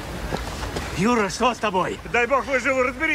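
A man shouts and groans nearby.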